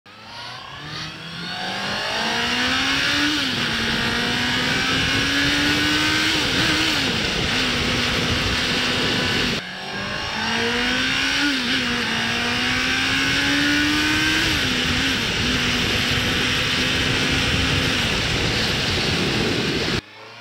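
A motorcycle engine revs up and shifts through the gears as the bike accelerates.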